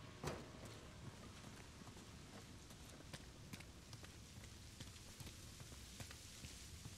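Footsteps crunch on loose gravel.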